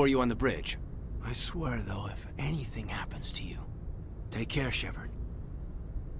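A man speaks softly and earnestly, close by.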